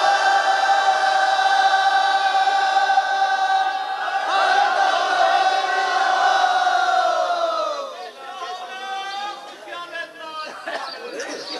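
A man chants in a long, wavering voice.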